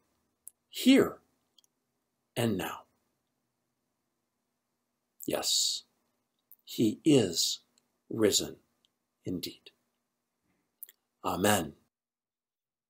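An older man speaks with animation, close to a microphone.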